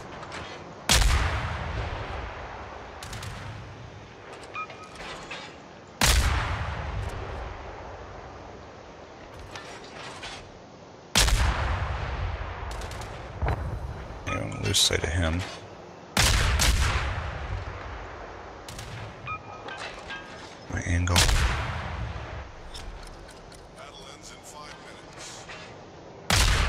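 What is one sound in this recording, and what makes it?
Heavy naval guns fire loud booming salvos that roll away slowly.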